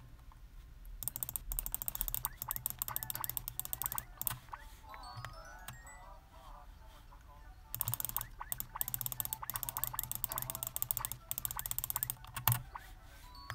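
Bouncy video game music plays in short bursts.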